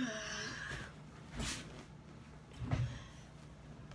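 A leather chair creaks as someone sits down on it.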